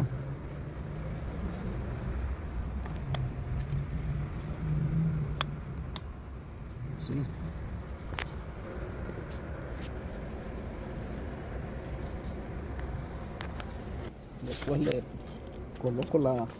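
Plastic parts of a car door lock actuator click and knock as hands work on it.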